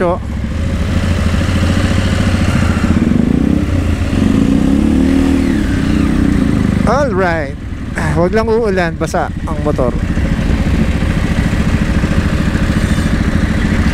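A motorcycle engine idles with a steady low rumble close by.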